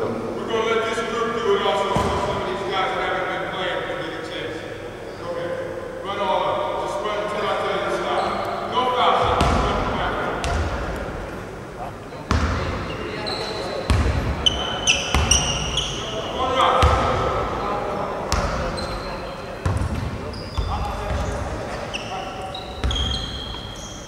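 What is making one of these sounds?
Men talk in a large echoing gym.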